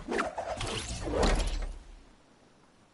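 A glider whooshes through rushing wind.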